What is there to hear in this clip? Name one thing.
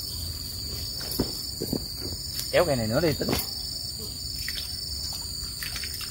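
Dry leaves and twigs crunch under footsteps close by.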